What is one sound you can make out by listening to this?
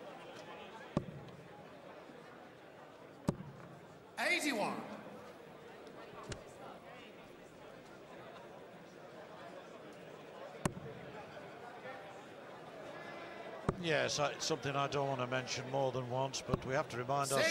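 Darts thud sharply into a dartboard.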